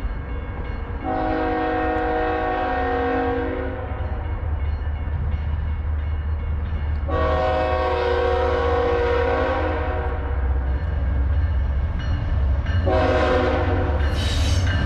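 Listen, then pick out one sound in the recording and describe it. A train horn blares in long, loud blasts.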